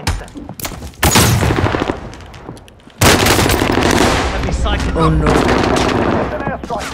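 Gunshots fire in loud, rapid bursts nearby.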